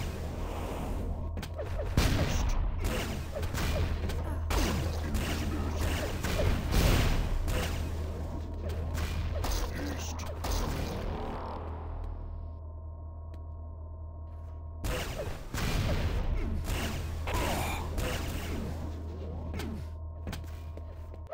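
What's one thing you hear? Railgun shots crack sharply, again and again.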